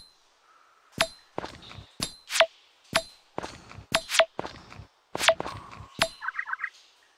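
A hammer strikes rock again and again with sharp, ringing clanks.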